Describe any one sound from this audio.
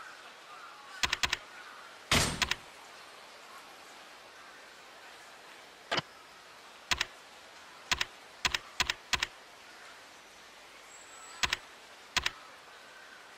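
Short electronic menu clicks and chimes sound one after another.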